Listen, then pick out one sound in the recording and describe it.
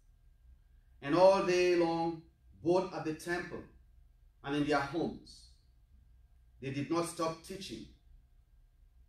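A man reads aloud slowly and calmly, with pauses between phrases.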